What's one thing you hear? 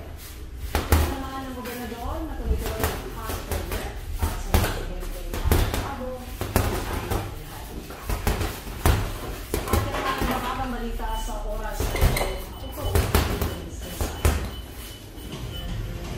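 Gloved punches thud sharply against a heavy punching bag.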